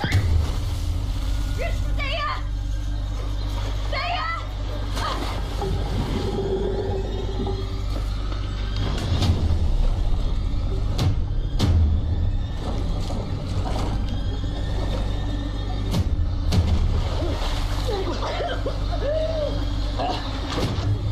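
Water splashes as people wade and swim.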